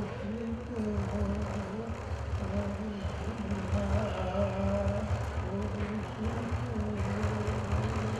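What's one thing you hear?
A hand drum booms in a steady beat.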